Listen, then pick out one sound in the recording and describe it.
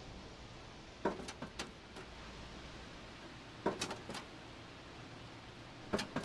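A cat lands with hollow thuds on a sheet metal roof.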